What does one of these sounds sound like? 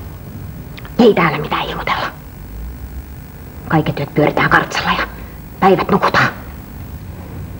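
A woman speaks firmly, close by.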